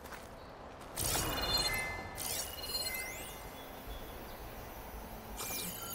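A soft chime rings as an item is picked up.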